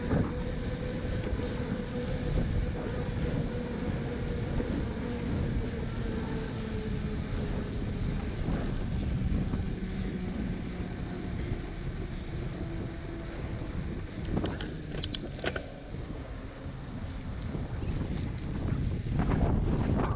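Wind rumbles and buffets against the microphone while moving.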